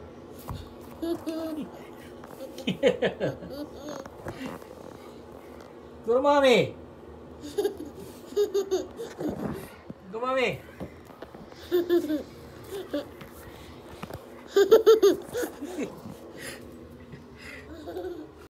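A young child babbles and squeals close by.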